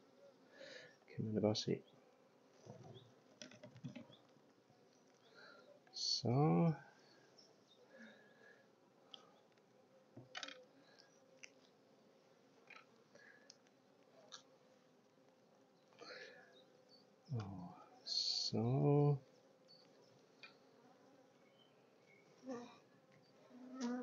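Bees buzz around a hive.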